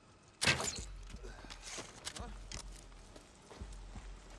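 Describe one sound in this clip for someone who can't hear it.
Footsteps crunch softly on gravel.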